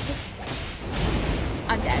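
A sword swooshes and slashes in a fight.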